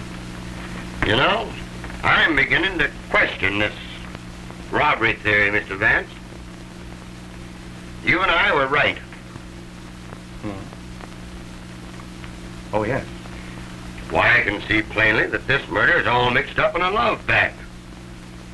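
Men speak in conversation, heard on an old film soundtrack with a steady hum.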